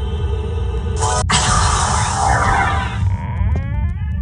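A magic spell bursts with a bright, hissing shimmer.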